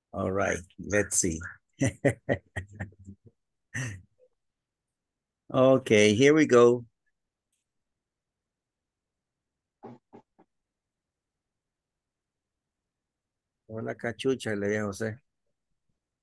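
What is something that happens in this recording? A man speaks with animation over an online call, in short bursts with pauses.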